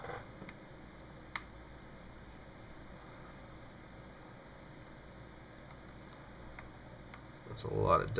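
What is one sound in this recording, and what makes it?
A metal pin clicks softly against a phone's side.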